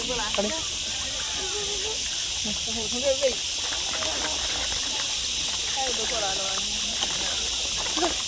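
Koi splash and churn at the water's surface.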